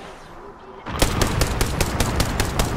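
A rifle fires in rapid bursts.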